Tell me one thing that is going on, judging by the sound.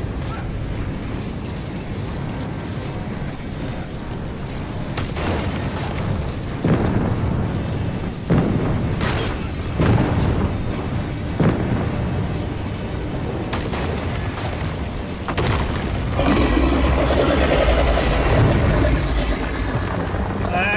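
A deep, steady rumble roars throughout.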